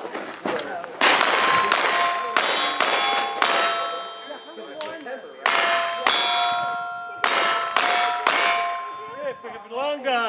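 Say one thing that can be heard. Steel targets ring sharply after each hit.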